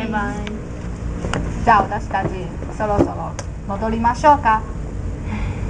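A young woman speaks casually up close.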